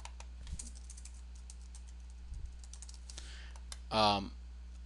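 Computer keys click softly as someone types.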